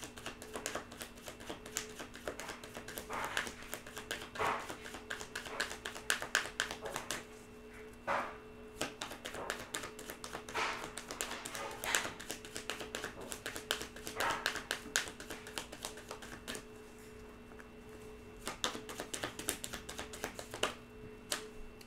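Playing cards are shuffled with quick soft riffling clicks.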